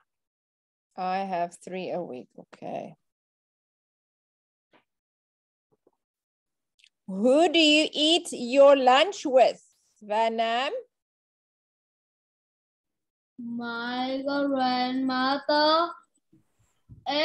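A woman speaks calmly and clearly through an online call.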